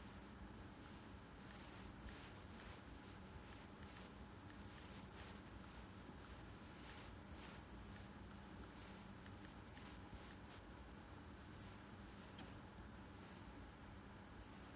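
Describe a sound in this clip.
A young man breathes softly close to the microphone.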